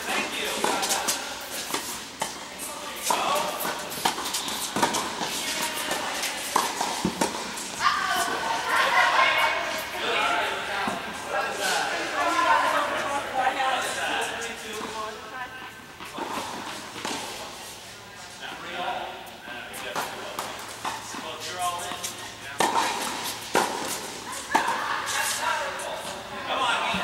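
Young women talk and call out across the courts.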